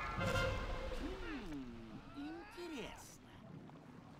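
A game creature roars with a bending cry.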